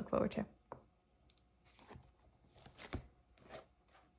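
Paper pages rustle as a sketchbook is flipped closed.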